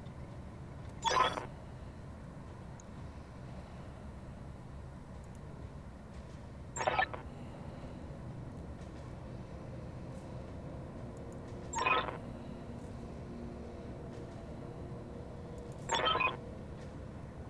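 A short electronic chime sounds each time a message pops up.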